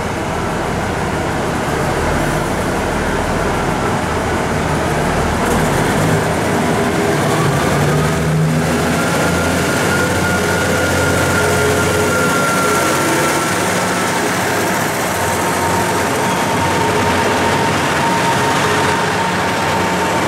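A diesel train engine idles with a deep rumble, then revs up as the train pulls away.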